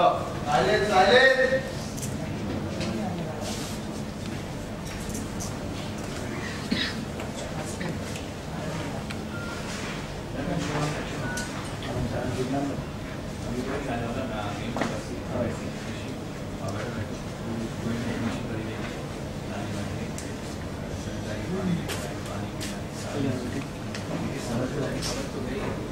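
A group of men and women chat quietly at a distance.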